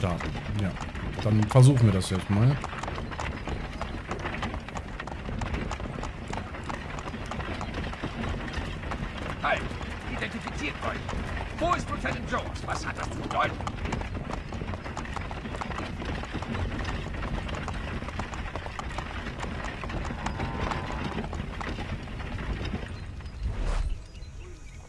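Horse hooves clop on the dirt road.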